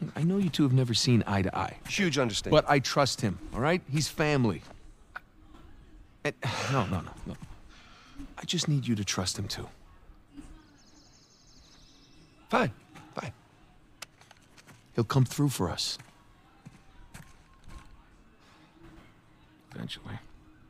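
A young man speaks earnestly and persuasively, close by.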